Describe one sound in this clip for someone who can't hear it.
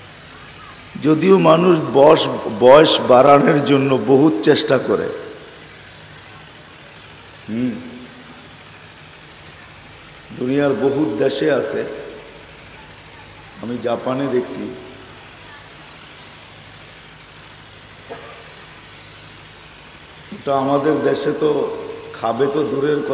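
An elderly man speaks with animation into a microphone, in bursts with pauses, heard through a loudspeaker.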